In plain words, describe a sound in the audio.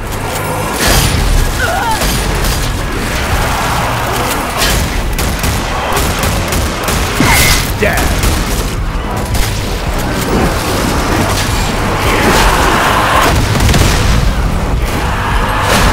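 Gunshots ring out one at a time, with loud, booming blasts.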